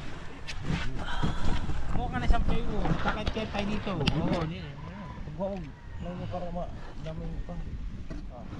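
Young men talk with animation close by.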